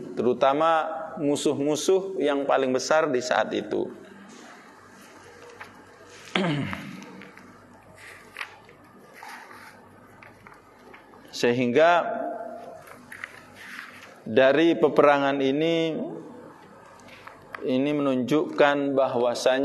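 A middle-aged man speaks calmly into a microphone, in a slightly echoing room, with long pauses.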